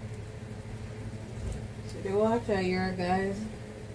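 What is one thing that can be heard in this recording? A metal pot lid clinks as it is lifted.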